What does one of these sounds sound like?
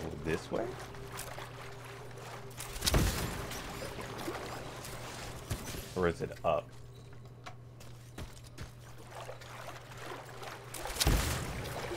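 Heavy footsteps splash through shallow water.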